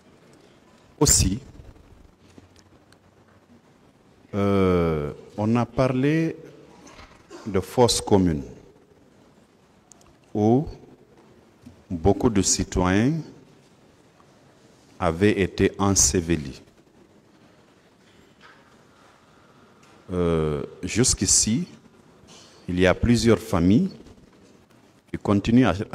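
A man speaks slowly into a microphone, in short phrases with long pauses.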